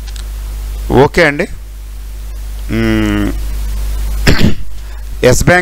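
A middle-aged man speaks calmly and closely into a headset microphone, in short phrases.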